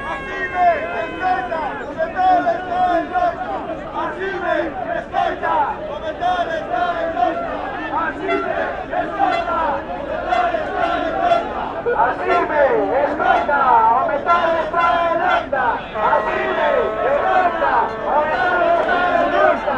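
A large crowd shouts and chants loudly outdoors.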